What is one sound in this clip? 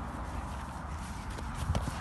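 Footsteps brush through grass nearby.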